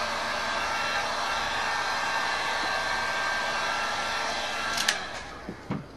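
A heat gun blows with a steady loud roar, then switches off.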